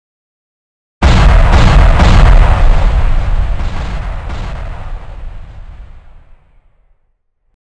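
Heavy blocks crash down with a deep rumbling boom that slowly fades.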